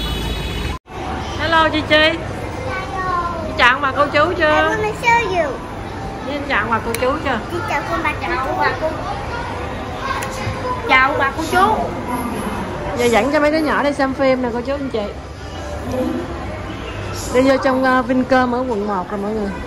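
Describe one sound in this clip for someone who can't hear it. A young girl speaks close by with animation.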